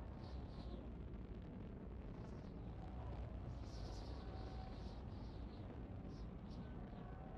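An aircraft's engines roar steadily as it flies.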